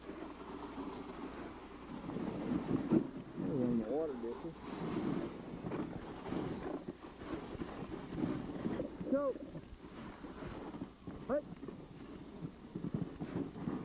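Sled runners hiss over packed snow.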